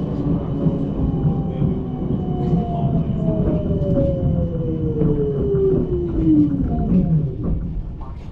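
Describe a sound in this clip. A tram motor whines, falling in pitch as it slows down.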